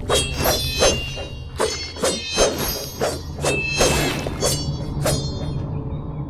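Sharp blade swishes and metallic clangs ring out in quick succession.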